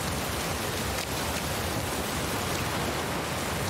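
Footsteps run quickly through wet grass.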